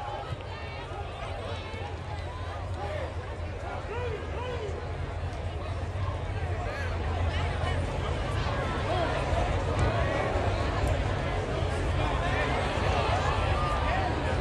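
A crowd in the stands cheers and shouts.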